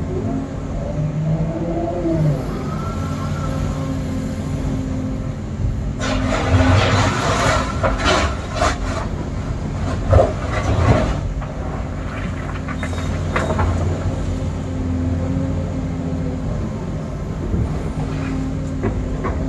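A diesel engine rumbles steadily, heard from inside a machine's cab.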